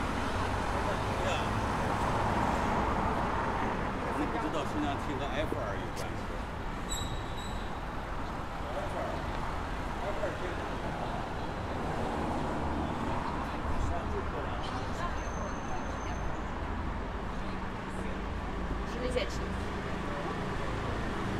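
City street noise with passing traffic hums steadily outdoors.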